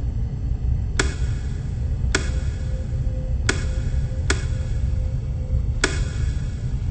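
Buttons click sharply several times.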